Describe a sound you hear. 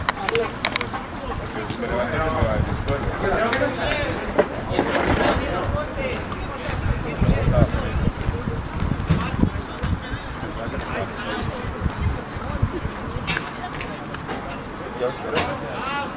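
Men shout and call out to each other at a distance.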